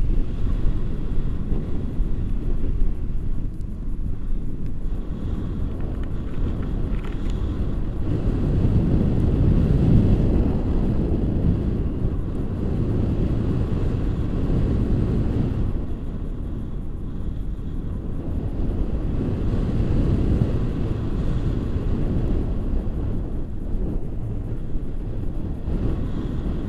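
Wind roars steadily against a microphone in flight.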